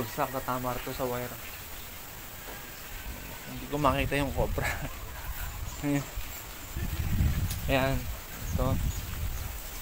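A young man talks calmly and close by.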